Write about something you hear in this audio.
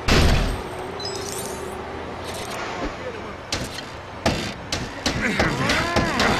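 Coins jingle and clink as they scatter.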